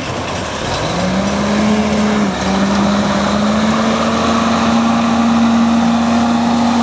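Muddy water splashes and churns as a truck ploughs through a pond.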